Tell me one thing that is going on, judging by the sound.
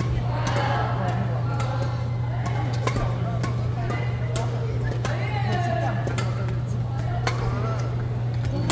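Badminton rackets strike shuttlecocks with sharp pops in a large echoing hall.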